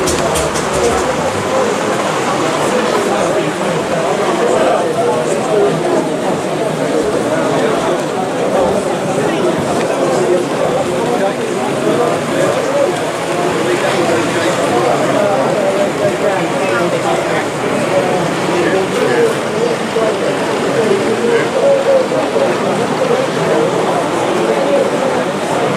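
A model diesel locomotive engine rumbles steadily at idle.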